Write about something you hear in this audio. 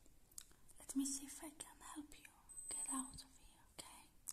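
A young woman murmurs softly, very close.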